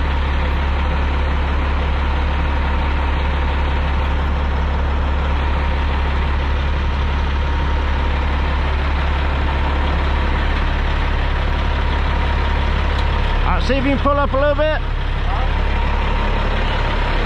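A heavy truck engine idles with a steady low rumble.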